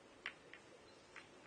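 A cue sharply taps a snooker ball.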